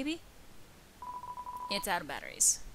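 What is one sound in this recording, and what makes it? A rapid run of short electronic blips sounds as game text types out.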